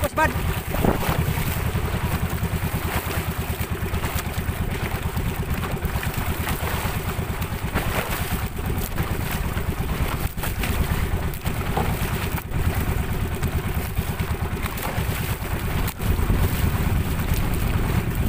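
A small boat engine drones steadily close by.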